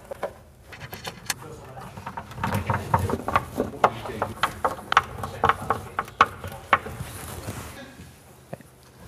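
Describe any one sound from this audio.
Metal parts click and rattle as they are fitted together.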